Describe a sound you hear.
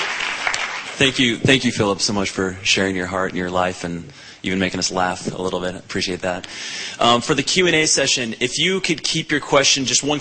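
A man speaks calmly through a microphone and loudspeakers in a large hall.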